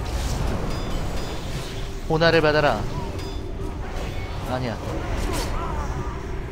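Magic spells whoosh and burst during a fight.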